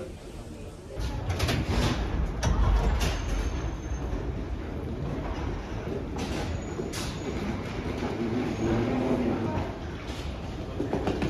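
Suitcase wheels roll along a hard floor.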